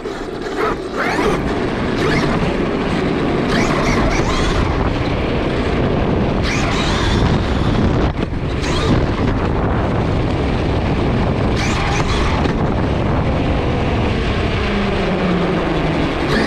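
A small electric motor whines, rising and falling in pitch as a toy car speeds up and slows down.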